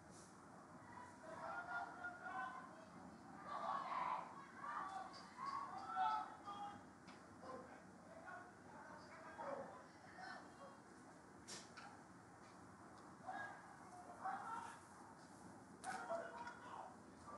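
Young women shout to each other across an open outdoor field.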